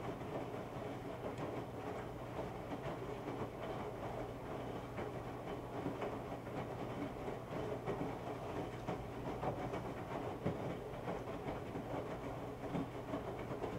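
A washing machine drum turns and hums steadily.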